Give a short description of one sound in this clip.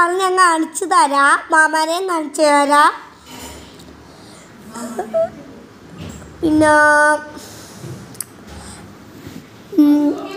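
A young girl sings in a high voice close to the microphone.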